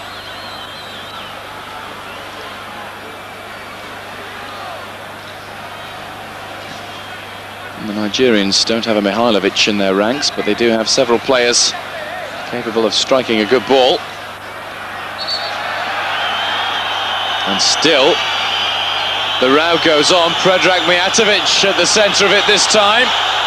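A large stadium crowd roars and murmurs steadily, growing louder toward the end.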